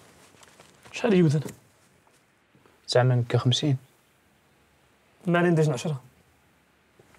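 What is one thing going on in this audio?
A second man speaks in short, quiet phrases up close.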